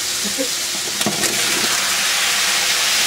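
Chopped tomatoes tumble into a pot with a soft thud.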